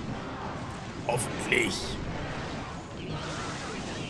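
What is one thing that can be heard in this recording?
A countdown chime sounds in a game.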